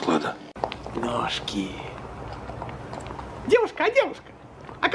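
A middle-aged woman speaks with animation.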